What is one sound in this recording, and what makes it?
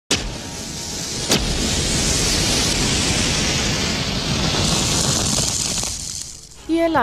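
A match flame flares and hisses.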